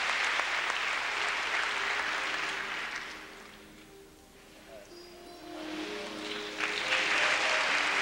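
A man speaks calmly nearby in a large echoing room.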